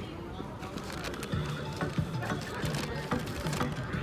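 A paper bag rustles.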